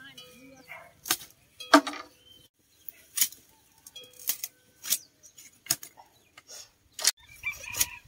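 A blade chops into bamboo with sharp knocks.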